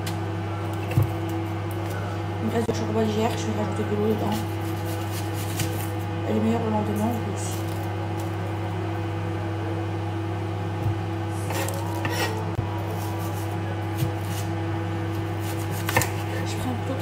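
A knife taps on a cutting board.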